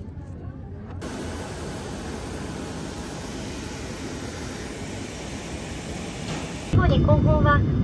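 A parked jet airliner hums steadily nearby, outdoors.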